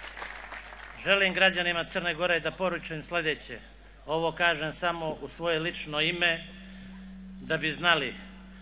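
A man speaks forcefully into a microphone over loudspeakers.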